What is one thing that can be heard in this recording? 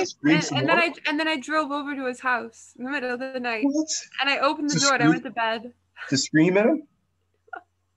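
A young woman speaks cheerfully over an online call.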